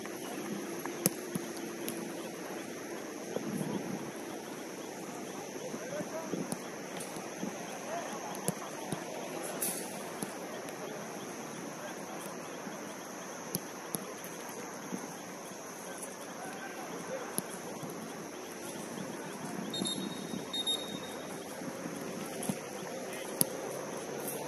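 A football is kicked with dull thuds, outdoors.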